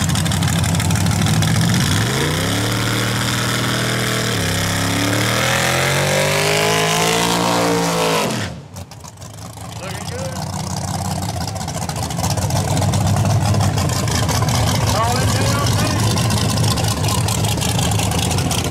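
A race car engine idles with a loud, deep rumble.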